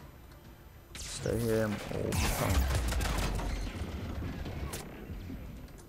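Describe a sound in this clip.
Gunfire bursts loudly in a game.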